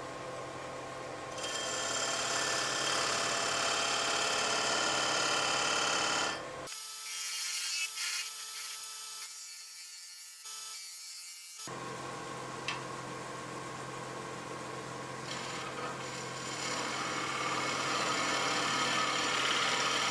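A wood lathe hums steadily as it spins.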